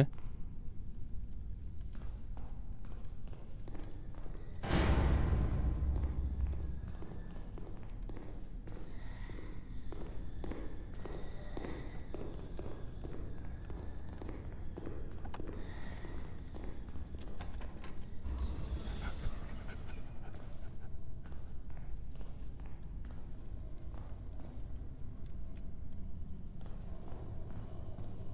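Footsteps thud steadily on hard stairs and floors.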